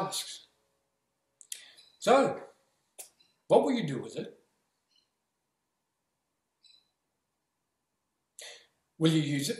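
A middle-aged man speaks close by in short bursts, with pauses between phrases.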